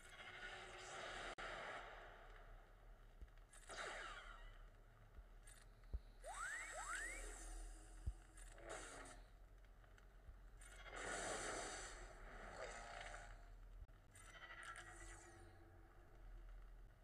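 Lightsabers hum and clash in bursts.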